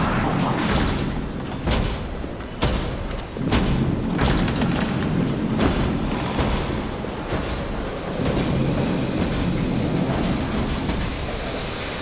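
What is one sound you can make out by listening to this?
Footsteps thud steadily on a hard metal floor.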